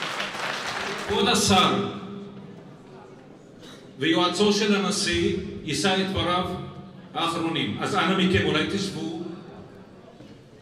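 A man speaks calmly through a loudspeaker in a large hall.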